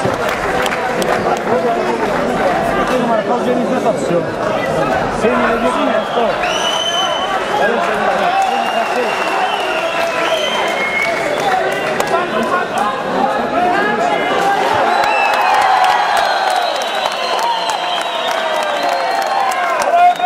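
A crowd of men and women chatters and calls out loudly in a large echoing hall.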